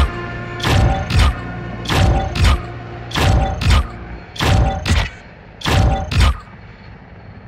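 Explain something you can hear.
Short bright game reward sounds burst in quick pairs as points are tallied.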